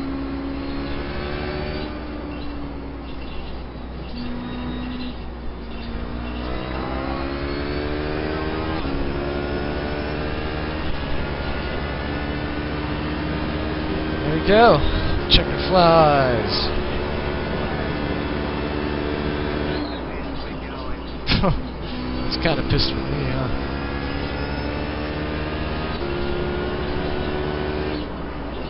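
A racing car engine roars, rising in pitch through each gear and dropping with each shift.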